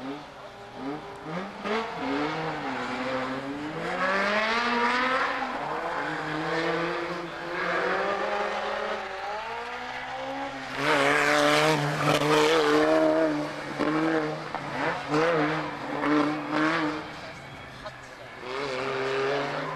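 A car engine revs hard, its pitch rising and falling through gear changes.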